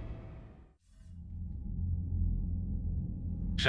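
A hologram hums low and steadily.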